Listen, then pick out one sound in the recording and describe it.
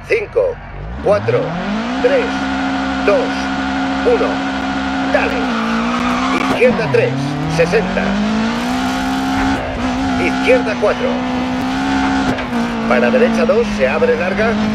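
A rally car engine revs hard and roars as the car accelerates through the gears.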